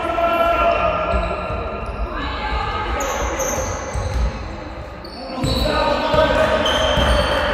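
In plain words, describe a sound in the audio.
Players' footsteps thud and squeak on a wooden floor in a large echoing hall.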